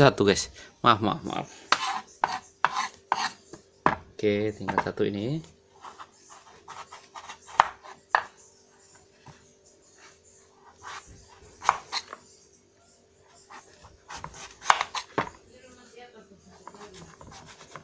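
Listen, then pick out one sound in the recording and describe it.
A knife chops through pumpkin and taps on a wooden board.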